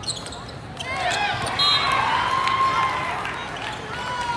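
Young players shout during a rally.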